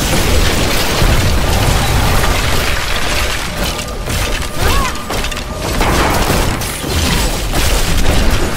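Magic spells crackle and blast in dense, noisy bursts.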